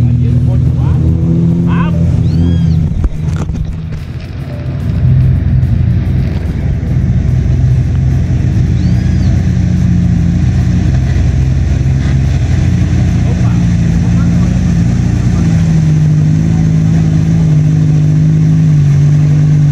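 An engine revs loudly as a vehicle drives through mud, coming closer.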